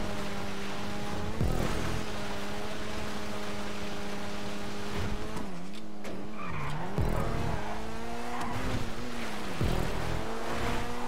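A car engine roars steadily, dipping and revving as it shifts gears.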